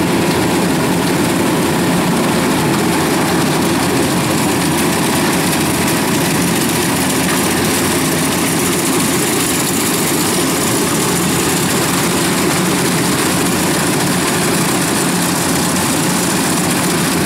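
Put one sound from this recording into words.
Rice stalks rustle and swish as a harvester cuts through them.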